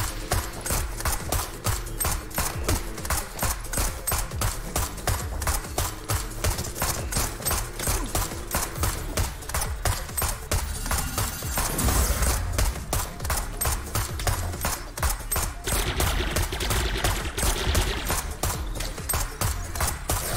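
Pounding electronic music plays.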